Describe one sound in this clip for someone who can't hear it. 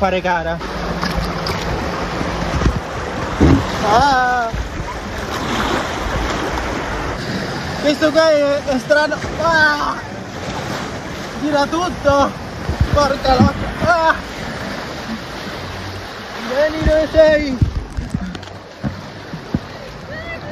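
Water rushes and splashes down a slide.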